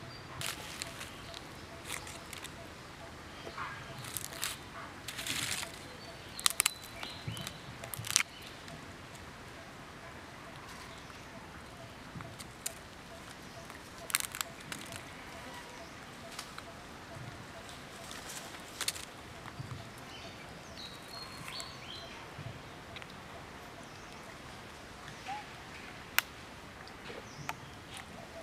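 A baby monkey suckles with soft smacking sounds.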